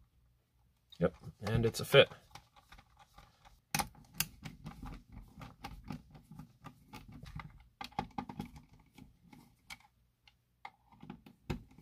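A plastic case knocks and rattles as hands handle it.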